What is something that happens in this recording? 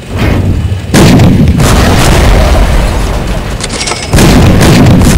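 Tank cannons fire with loud booms.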